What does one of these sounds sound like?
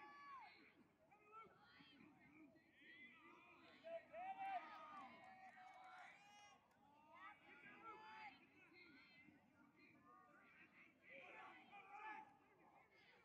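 Young men shout across an open field.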